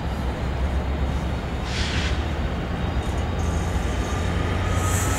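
A passenger train rumbles steadily past close by.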